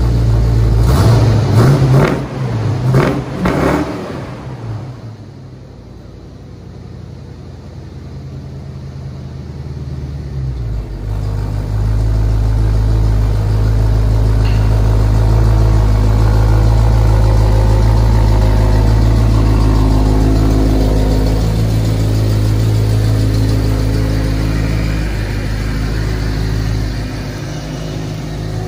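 A car engine idles with a deep, steady rumble close by.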